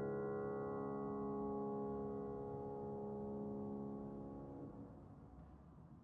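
A piano plays sustained chords that ring out in a large echoing hall.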